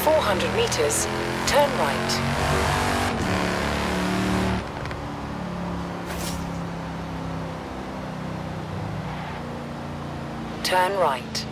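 A car engine roars steadily, its pitch rising and falling with speed.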